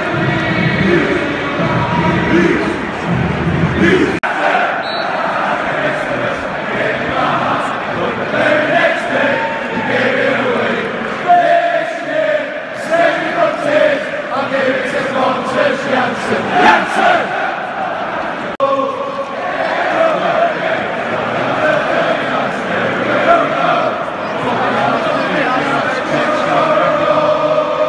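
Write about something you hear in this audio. A large crowd chants and cheers loudly in an open stadium.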